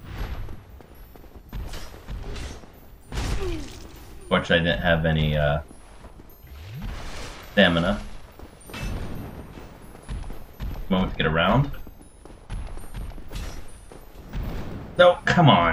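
Swords strike and thud in a fight with a large creature.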